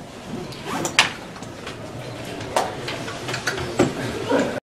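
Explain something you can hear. Seats clack as people stand up.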